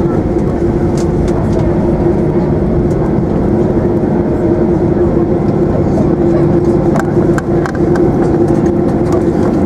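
Jet engines roar loudly with a steady hum as an airliner rolls down a runway.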